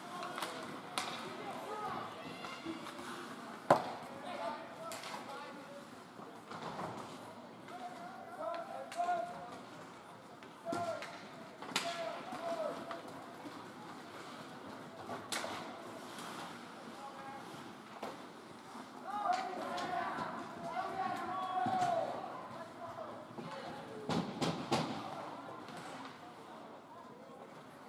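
Skates scrape and carve on ice in a large echoing rink.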